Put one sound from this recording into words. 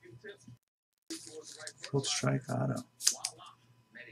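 A plastic card sleeve rustles and crinkles.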